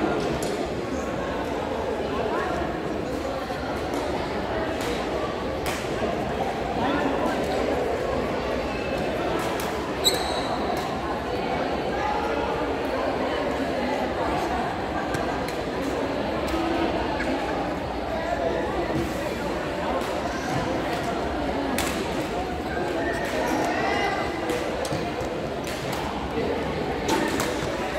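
Sports shoes squeak on the court floor.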